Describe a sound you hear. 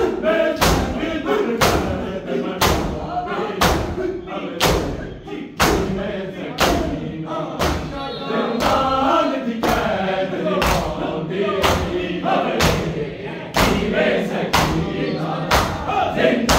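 A crowd of men chants loudly together in an echoing hall.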